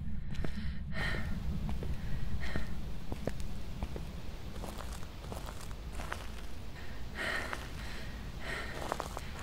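Footsteps crunch on gravel outdoors.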